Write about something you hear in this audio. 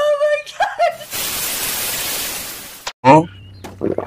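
Television static hisses.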